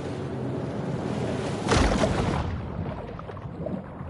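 Water splashes as a shark dives beneath the surface.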